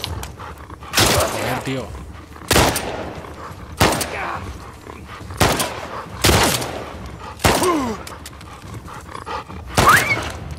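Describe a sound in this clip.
Gunshots crack one after another.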